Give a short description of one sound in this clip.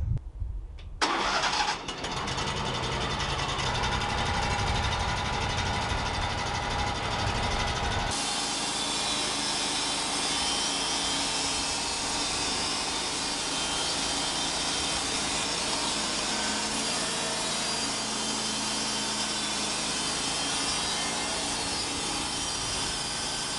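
A sawmill engine drones steadily.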